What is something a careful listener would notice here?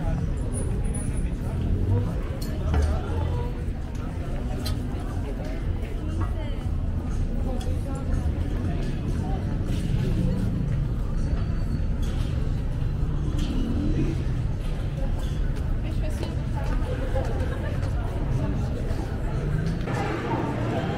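A crowd murmurs and talks outdoors.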